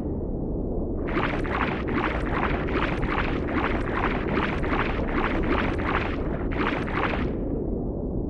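Water swishes in quick, rhythmic swimming strokes.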